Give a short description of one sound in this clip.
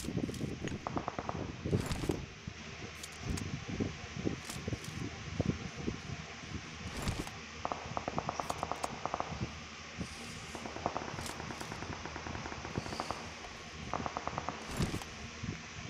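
Footsteps patter quickly through grass.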